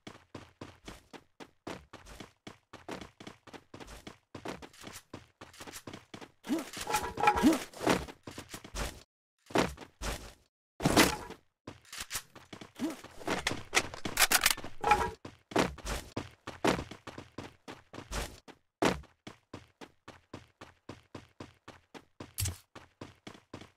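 Quick footsteps run over hard ground.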